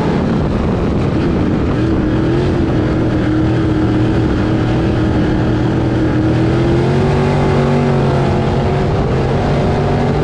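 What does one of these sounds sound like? A race car engine roars loudly and close, its pitch rising and falling.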